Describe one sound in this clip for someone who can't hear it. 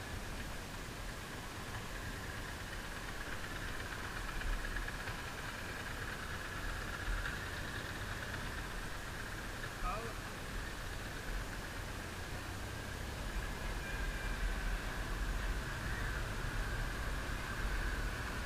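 A motorcycle engine hums steadily while riding slowly.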